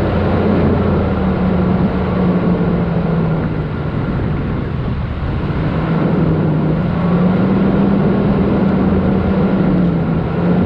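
A car engine hums steadily, rising and falling in pitch.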